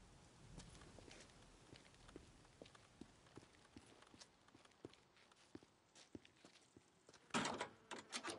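Footsteps tread on concrete.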